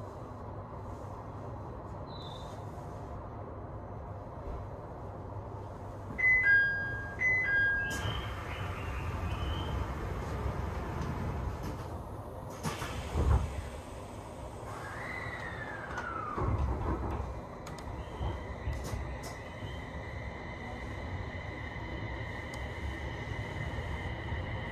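A train's engine hums low and steady from inside the carriage.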